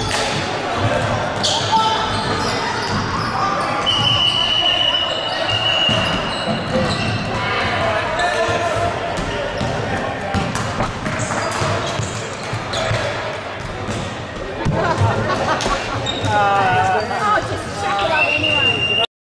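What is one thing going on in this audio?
Sneakers squeak on a wooden court in a large echoing gym.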